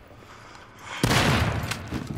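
A shotgun fires with a loud, echoing boom.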